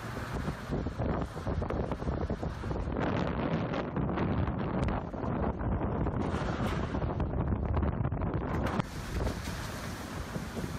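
Strong wind gusts outdoors, roaring and buffeting loudly.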